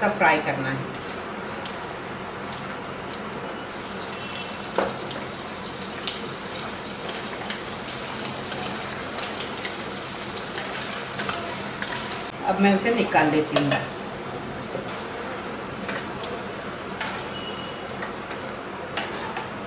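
Hot oil sizzles and crackles in a pan.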